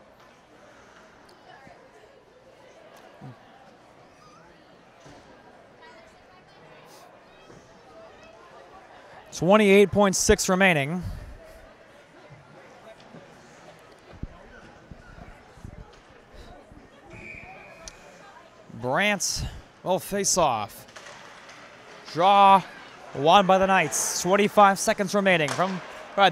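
Ice skates scrape and glide across an ice rink.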